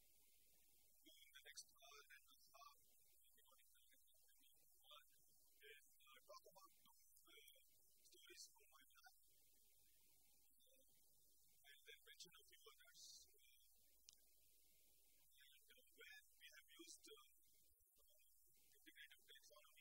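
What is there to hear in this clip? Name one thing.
A man speaks calmly, lecturing in a room with a slight echo.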